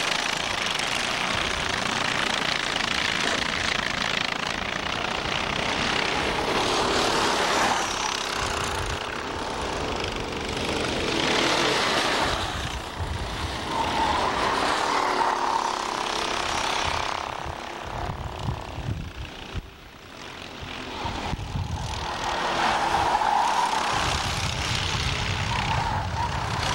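Kart engines buzz and whine loudly as karts race past.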